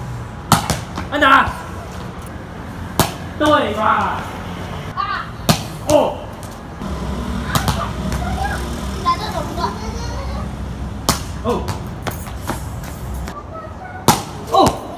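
A plastic bat hits a ball with sharp smacks.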